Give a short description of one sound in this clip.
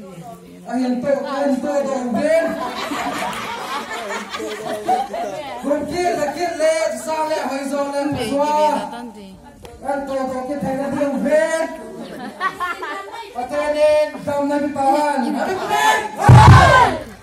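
A man speaks loudly to a crowd outdoors.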